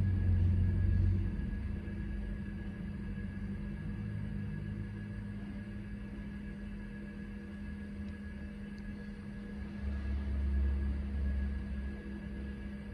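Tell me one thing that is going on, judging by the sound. An old computer hums steadily close by.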